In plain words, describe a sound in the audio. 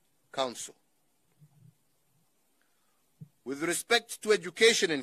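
A middle-aged man speaks calmly and formally into a microphone, pausing between phrases.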